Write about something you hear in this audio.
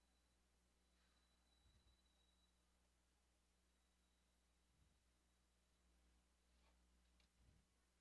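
Metal tweezers tap and scrape lightly on a circuit board.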